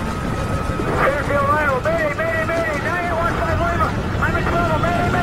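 A young man sings in a melodic voice.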